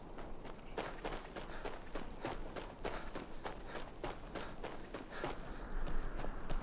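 Footsteps crunch steadily on dirt and grass.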